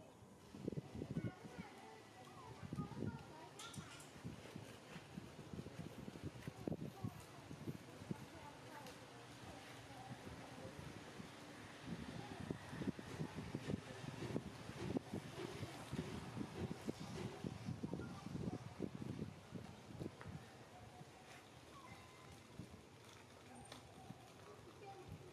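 Leaves and branches rustle as a monkey climbs through a tree.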